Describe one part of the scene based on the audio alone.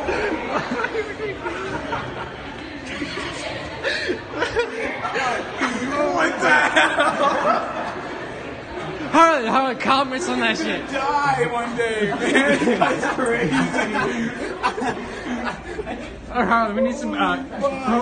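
Young men talk and shout excitedly close by.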